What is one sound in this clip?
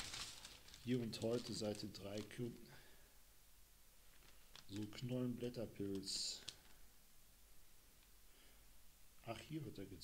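A man speaks calmly and close into a microphone, in short phrases with pauses.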